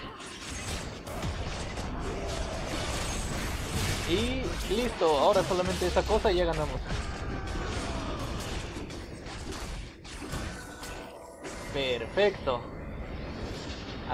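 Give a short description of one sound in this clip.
Magic blasts crackle and boom in a busy battle.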